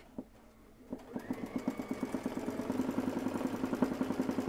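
A sewing machine stitches with a fast, steady rattle.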